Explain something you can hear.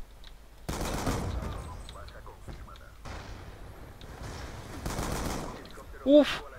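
Rapid gunfire bursts from an automatic rifle.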